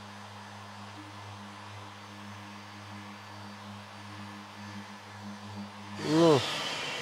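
An electric sander hums steadily.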